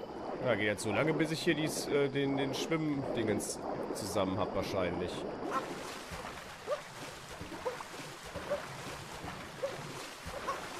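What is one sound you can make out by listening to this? Water splashes softly as a figure swims.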